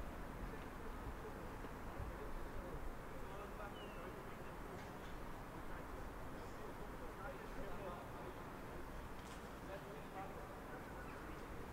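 Rugby players shout calls in the distance across an open, empty stadium.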